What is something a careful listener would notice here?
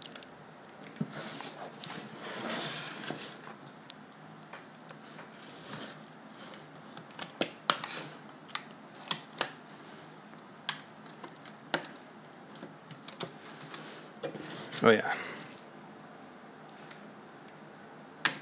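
A knife blade clicks and taps against a hard plastic edge.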